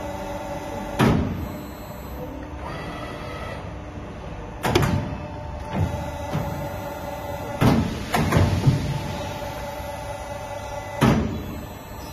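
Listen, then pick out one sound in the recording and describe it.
A pipe bending machine's clamps clunk against a steel pipe.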